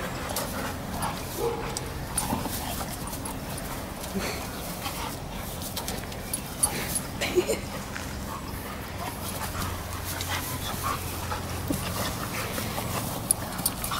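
Two dogs growl and snarl playfully.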